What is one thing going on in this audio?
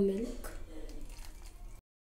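Liquid pours into a glass bowl.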